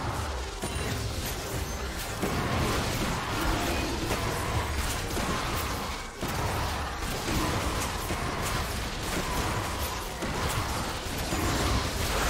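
Fantasy battle game spell and hit effects crackle and whoosh.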